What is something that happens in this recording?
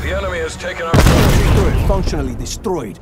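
A small remote-controlled car explodes with a loud blast.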